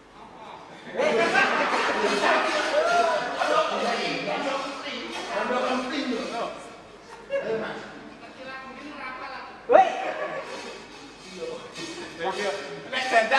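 A man speaks with animation, heard over a loudspeaker in an echoing hall.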